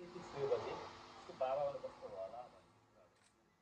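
A man speaks into a microphone over a loudspeaker in an echoing room.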